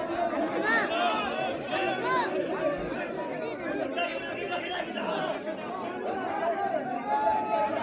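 Several men talk loudly nearby.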